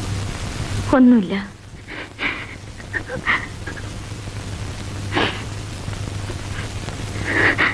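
A young woman sobs softly.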